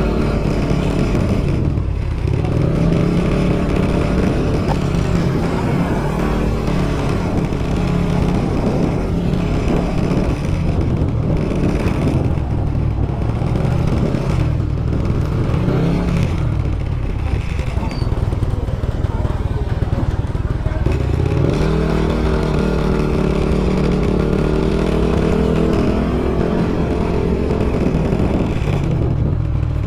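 A motorcycle engine hums steadily and rises and falls in pitch as the rider speeds up and slows down.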